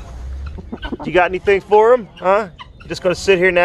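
Hens cluck and squawk close by.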